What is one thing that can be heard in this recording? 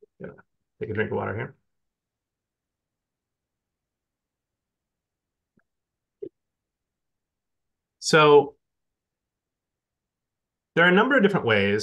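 A man speaks over an online call, in short bursts with pauses.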